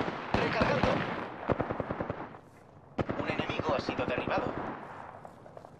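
Rapid bursts of gunfire rattle close by.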